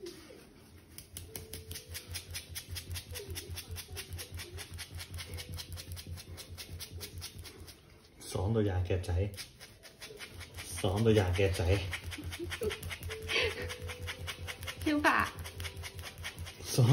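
A hand rapidly scratches through thick dog fur.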